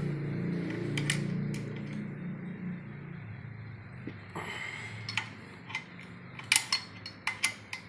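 A metal wrench clicks and clinks against a bolt.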